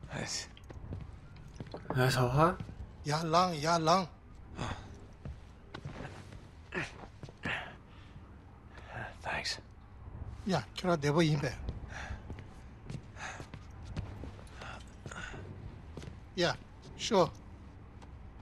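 A younger man answers briefly and calmly.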